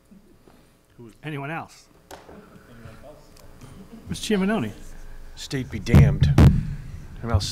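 A man speaks into a microphone with a slight echo.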